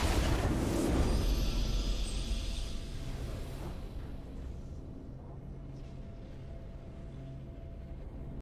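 A triumphant victory fanfare swells and slowly fades.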